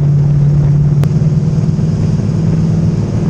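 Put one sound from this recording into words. A race car engine roars loudly from inside the car.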